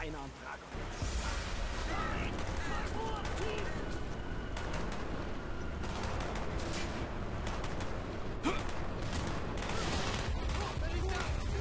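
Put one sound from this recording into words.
An automatic rifle fires in bursts.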